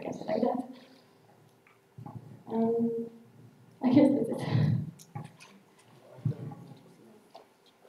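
A young woman speaks into a microphone over loudspeakers in an echoing room.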